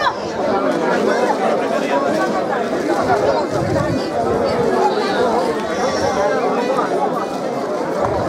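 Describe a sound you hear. A group of men sing together.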